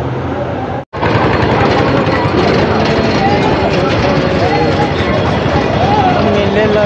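Bumper cars rumble.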